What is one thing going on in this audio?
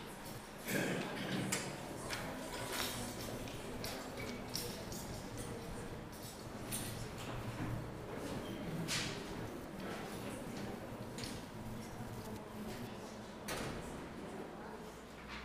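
A man speaks calmly through a microphone.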